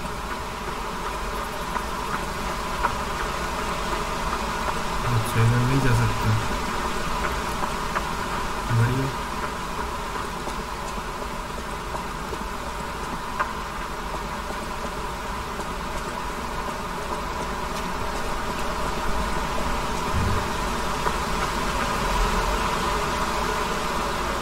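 Footsteps crunch over grass and stone at a steady walking pace.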